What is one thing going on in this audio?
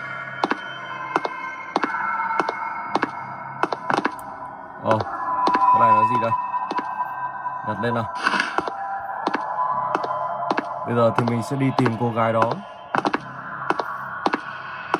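Game footsteps thud steadily through a small tablet speaker.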